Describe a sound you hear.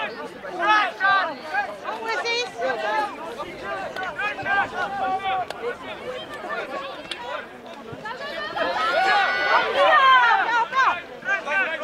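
Young male players shout and call to each other outdoors.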